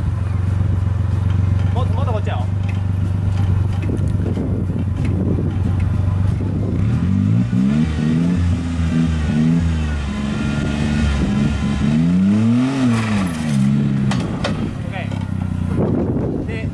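A vehicle's engine idles and revs up and down.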